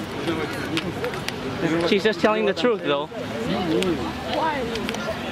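A crowd of people chat outdoors, voices overlapping nearby.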